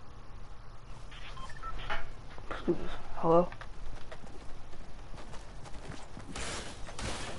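Pickaxes whoosh and clang in a video game.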